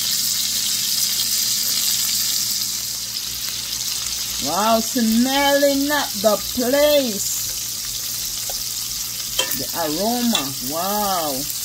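Bacon and sliced sausage sizzle in a metal frying pan.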